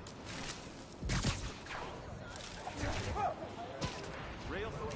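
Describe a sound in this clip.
Web lines shoot out with sharp whooshing snaps.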